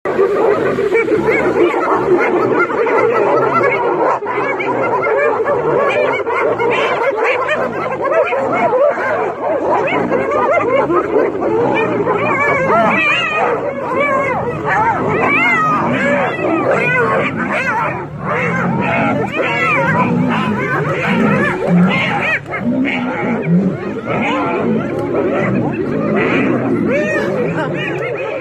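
Hyenas cackle, whoop and giggle loudly and continuously.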